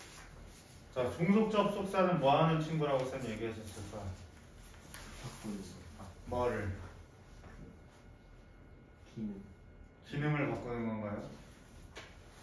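A young man speaks calmly, pausing between phrases.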